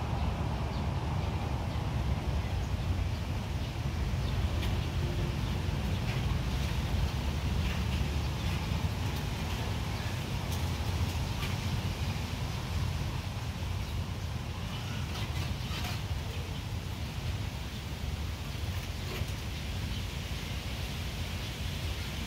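A cat purrs close by.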